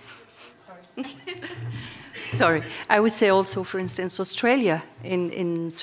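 A woman speaks steadily into a microphone in a large hall.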